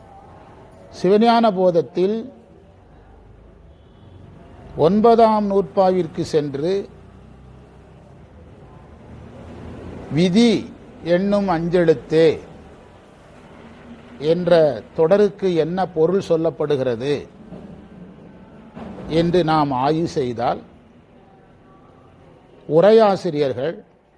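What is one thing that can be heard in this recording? A man speaks through a microphone in bursts, with long pauses between phrases.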